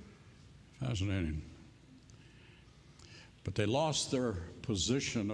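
An elderly man speaks slowly and earnestly through a microphone.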